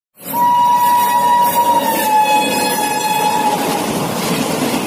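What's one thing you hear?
A train horn blares loudly and drops in pitch as it passes.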